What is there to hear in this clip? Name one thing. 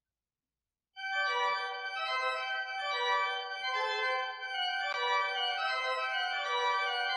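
A pipe organ plays loudly, echoing in a large hall.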